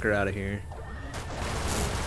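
An explosion booms in a game.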